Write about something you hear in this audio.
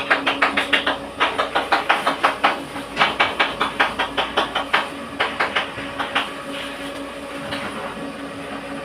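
Powder scrapes and rustles as it is scooped into a bucket.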